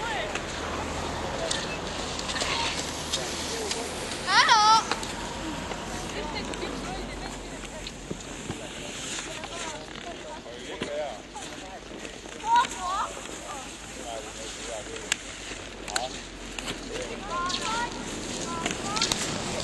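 Ski poles click against hard snow.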